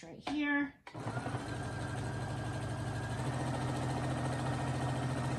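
A sewing machine whirs steadily as it stitches.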